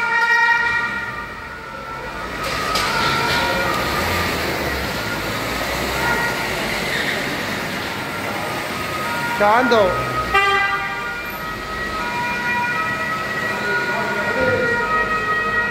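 Police car sirens sound in a large echoing hall.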